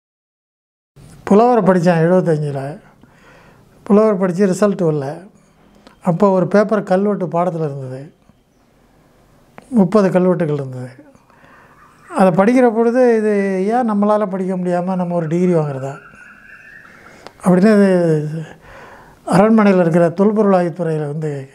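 An elderly man speaks calmly into a clip-on microphone, in short phrases with pauses.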